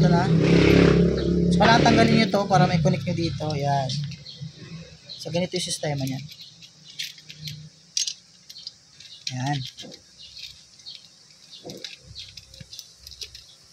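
Small metal parts click and tap together as they are fitted.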